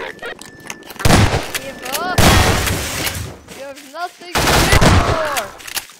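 A shotgun fires loud booming blasts.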